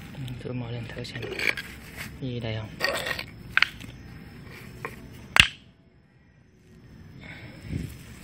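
Stone slabs scrape and clack together as they are moved by hand.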